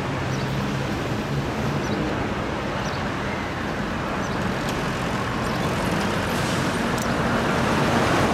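Trucks rumble along a road outdoors, growing louder as they approach.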